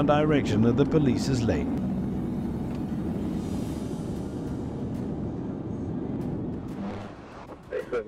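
A car engine and tyres hum steadily on a highway.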